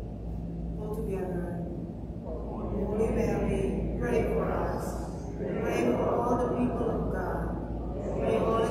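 A man reads out through a microphone and loudspeakers in a large echoing hall.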